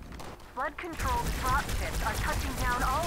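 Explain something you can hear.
Game weapons fire in bursts of sharp shots.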